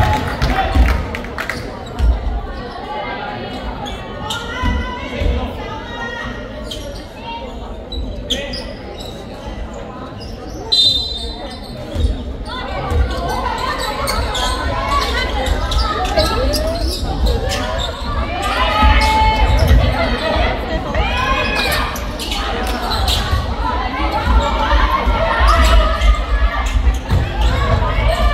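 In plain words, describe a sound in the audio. Spectators chatter and call out from the stands.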